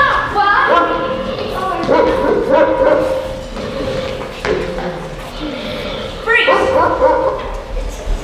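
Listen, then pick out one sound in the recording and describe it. Young children speak and call out with animation in a large echoing hall.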